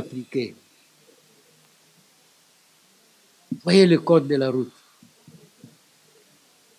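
An elderly man speaks calmly into a close microphone, in short bursts with pauses.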